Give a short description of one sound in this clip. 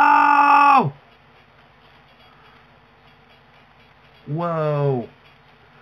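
A young man exclaims loudly into a nearby microphone with a long, falling cry.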